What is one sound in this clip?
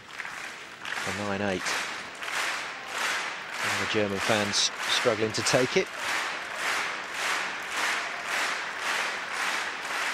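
A large crowd claps in a steady, even rhythm.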